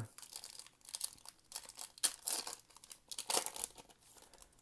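A foil wrapper crinkles and tears as it is torn open.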